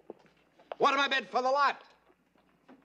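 An elderly man calls out loudly like an auctioneer.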